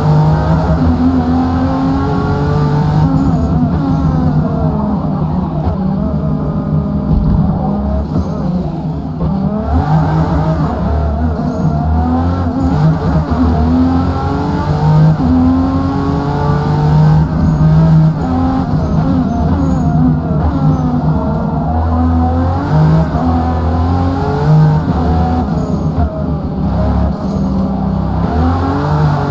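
A sports car engine roars loudly, revving up and down as gears shift.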